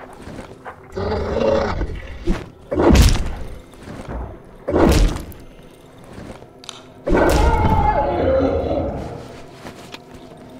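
A creature roars harshly.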